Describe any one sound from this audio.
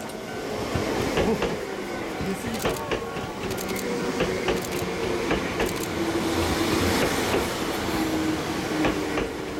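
A train's wheels clatter and squeal on the rails.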